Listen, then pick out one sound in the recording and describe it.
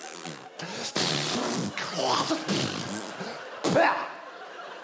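A man shouts and growls playfully.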